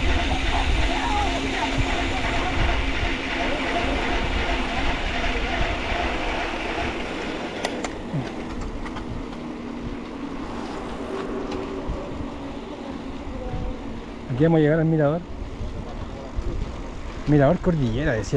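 Wind rushes loudly past a moving bicycle rider.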